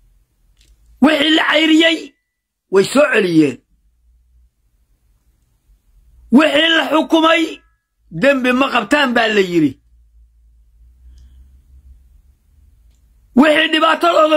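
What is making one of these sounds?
An elderly man speaks with animation in short bursts, close to a microphone.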